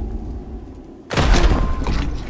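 A kick lands with a heavy thud.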